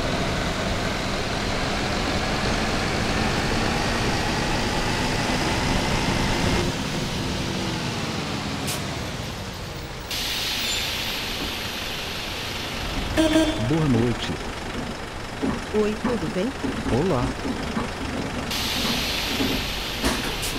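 A diesel city bus engine runs as the bus drives along.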